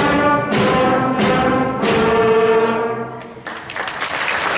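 A school band plays a final chord that rings out in a large hall.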